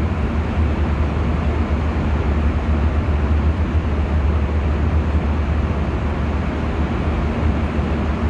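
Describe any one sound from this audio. A jet airliner's engines roar with a steady, deep drone inside the cabin.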